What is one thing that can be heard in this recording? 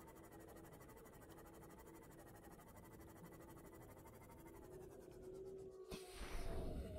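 A submarine engine hums steadily, then stops.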